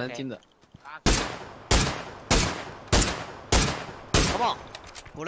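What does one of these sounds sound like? Rifle shots crack at an even pace.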